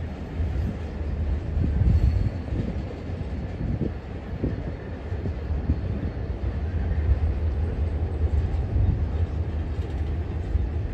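A freight train rumbles slowly past in the distance, outdoors.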